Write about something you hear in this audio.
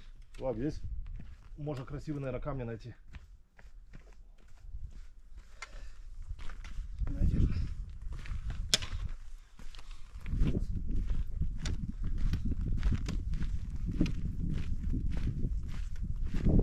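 Trekking poles click and tap on rocky ground.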